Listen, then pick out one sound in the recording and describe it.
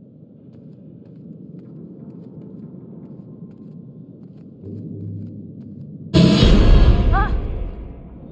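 Bare feet pad softly across a hard floor.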